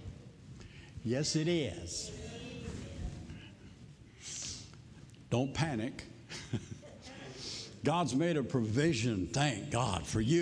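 An elderly man speaks with animation into a microphone in a large echoing hall.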